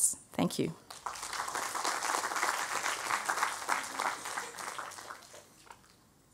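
An audience applauds and then fades out.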